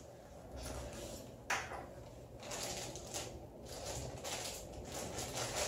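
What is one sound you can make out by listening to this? Plastic wrapping rustles and crinkles in hands close by.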